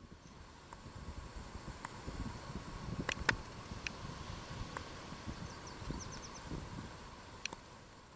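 Small waves wash gently onto a sandy shore nearby.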